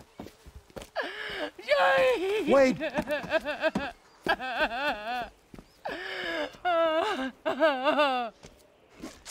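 A woman wails and sobs loudly nearby.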